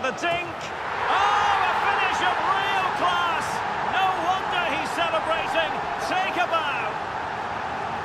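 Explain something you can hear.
A stadium crowd roars loudly in cheering.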